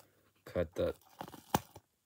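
Scissors snip plastic.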